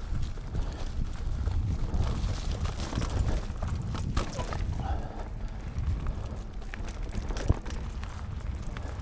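A bicycle's frame and chain rattle and clatter over bumps.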